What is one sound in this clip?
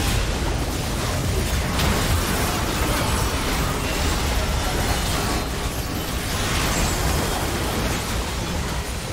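Video game spell effects whoosh and crash in a busy fight.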